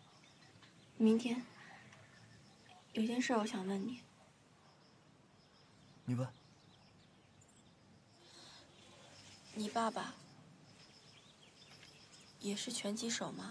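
A young woman speaks softly and close by, asking questions.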